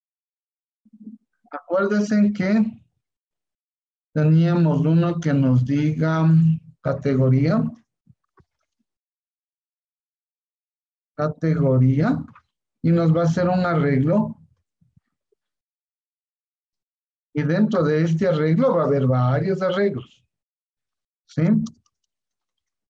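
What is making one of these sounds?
A young man talks calmly over an online call, in short bursts with pauses.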